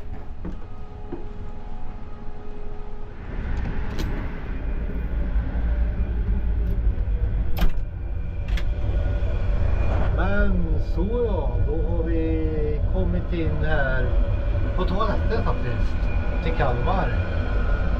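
A steady low rumble of a moving train fills the background.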